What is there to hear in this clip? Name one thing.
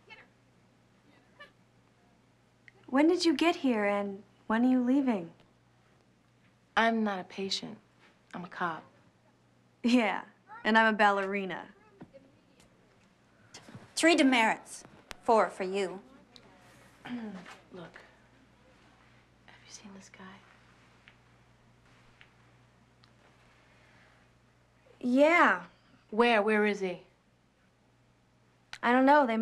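Another young woman answers quietly, close by.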